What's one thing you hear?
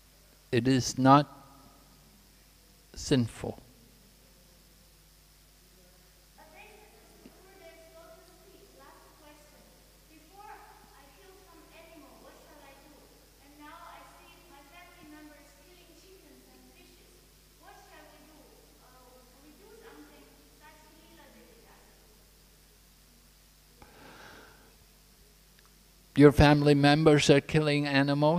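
An elderly man speaks calmly into a microphone, heard through loudspeakers.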